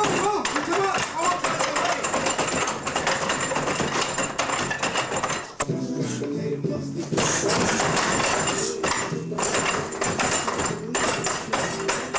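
Hands and arms knock against a wooden training post.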